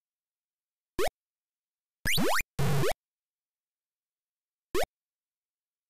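Short rising electronic beeps from a retro video game chirp in quick bursts.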